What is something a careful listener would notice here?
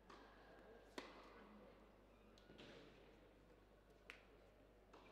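A tennis ball is struck with a racket in a large echoing hall.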